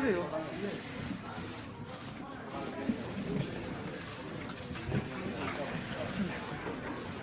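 Several men and women chatter in the background of a room that echoes.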